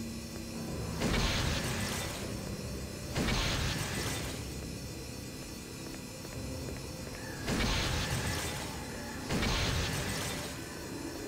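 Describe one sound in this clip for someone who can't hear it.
A beam of magical energy bursts on with a loud whoosh.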